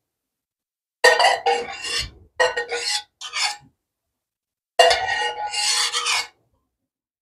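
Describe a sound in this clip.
A spoon clinks and scrapes inside a metal pot.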